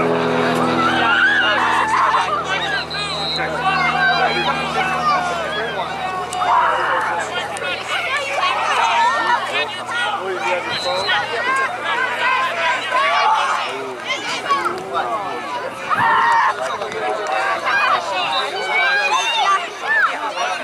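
A crowd of adults cheers and calls out from nearby.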